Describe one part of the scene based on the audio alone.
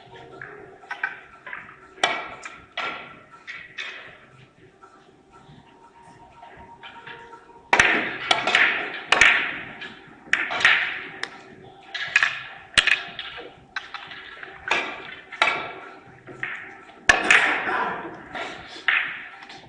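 Billiard balls click against each other and knock off the cushions.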